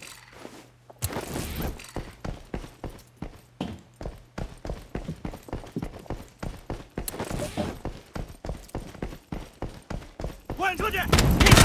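Footsteps thud quickly and evenly on a hard floor.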